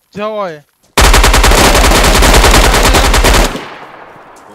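Gunfire rattles in a rapid, loud burst.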